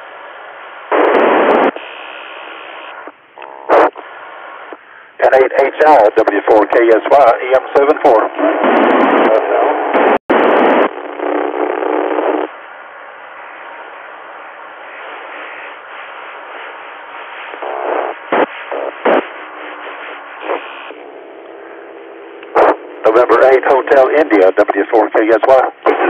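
A radio receiver hisses with static and crackles between transmissions.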